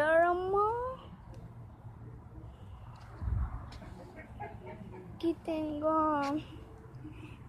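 A young girl speaks close by in a high, singsong voice.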